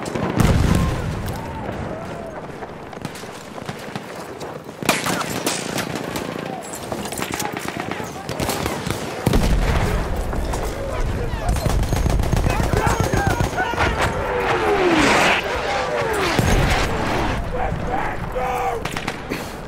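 Gravel crunches as a soldier crawls across the ground.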